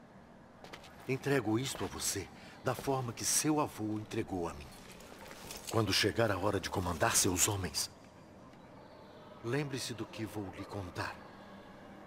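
An elderly man speaks calmly and gravely, close by.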